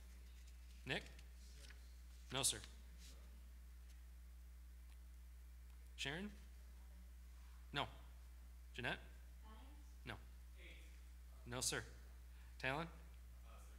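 A man speaks slowly and calmly through a microphone, with long pauses, in an echoing hall.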